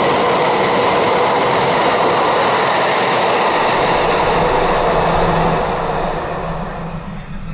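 A train rumbles past, loud and close, then fades.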